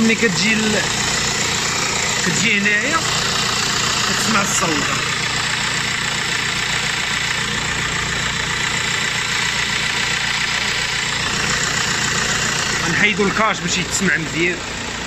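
A car engine idles steadily close by.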